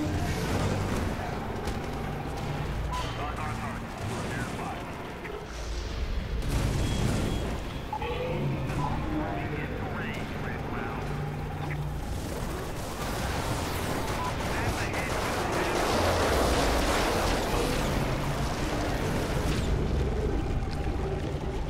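Heavy impacts and crashes boom throughout a fight.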